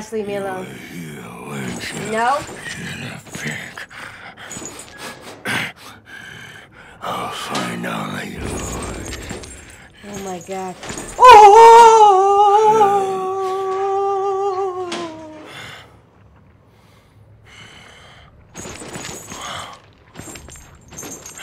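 A young woman talks with animation into a close microphone.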